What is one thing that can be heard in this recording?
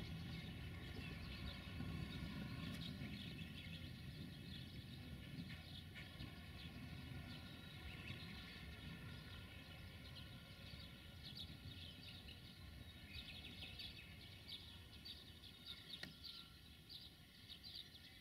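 Train wheels squeal and click on the rails.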